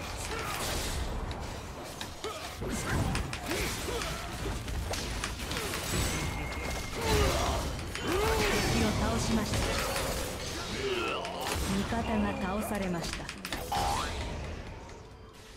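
Video game spell and combat effects whoosh and clash.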